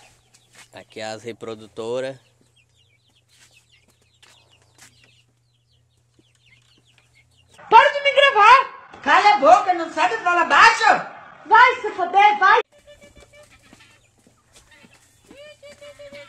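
Hens cluck softly close by.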